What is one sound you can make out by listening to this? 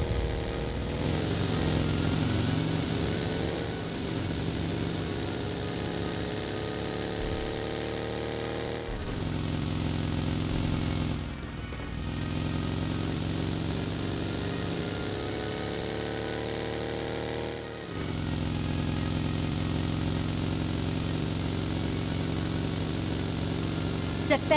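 A buggy engine roars steadily, its pitch rising and dropping as it speeds up and slows.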